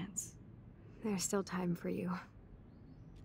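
A young woman replies quietly in a weak voice.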